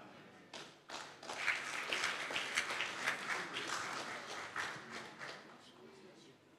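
A crowd of women cheer and chatter.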